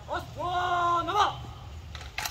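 A man shouts a long, drawn-out command outdoors.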